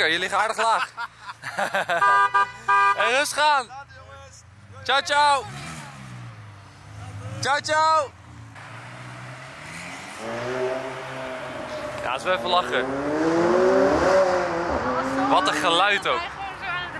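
A sports car engine revs loudly in sharp bursts.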